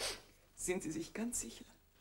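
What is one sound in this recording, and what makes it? An elderly woman speaks.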